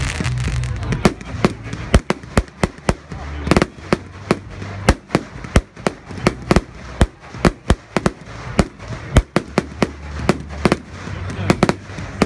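Fireworks bang and crackle in rapid bursts outdoors.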